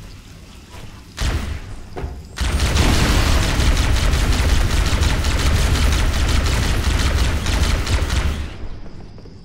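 A plasma gun fires in rapid bursts.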